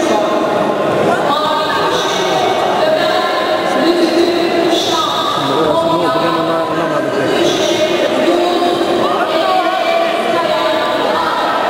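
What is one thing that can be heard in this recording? Many voices chatter and murmur in a large echoing hall.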